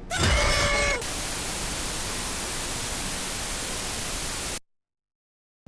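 Loud television static hisses steadily, then cuts off.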